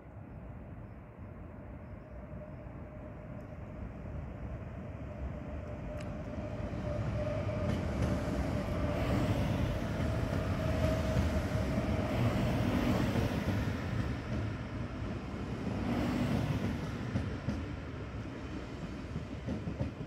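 A train rolls along the tracks with a low rumble, growing louder as it approaches.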